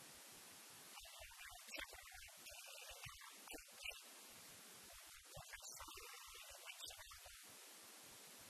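Distant players call out to each other on an open outdoor pitch.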